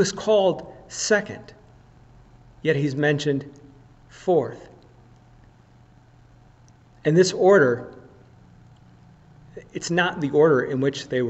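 A man speaks calmly and slowly into a close microphone, with pauses.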